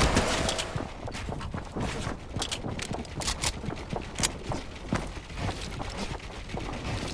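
Building pieces snap into place with quick, sharp clicks.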